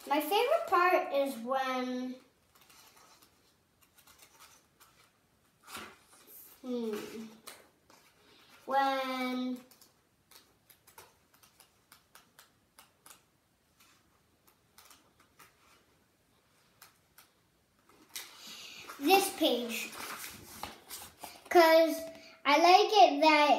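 A young boy reads aloud with animation, close by.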